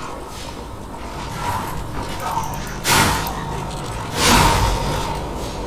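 Blades strike with sharp metallic hits.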